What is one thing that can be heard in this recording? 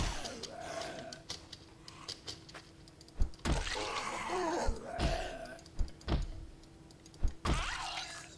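Blunt blows thud against a body in a short struggle.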